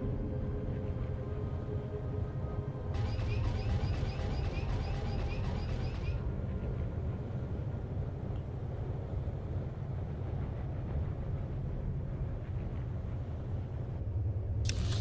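A hovering speeder's engine hums steadily with a low drone.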